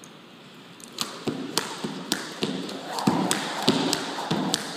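A jump rope slaps the floor in a steady rhythm.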